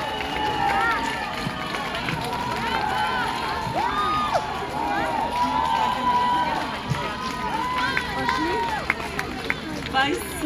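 A saxophone plays in a live band.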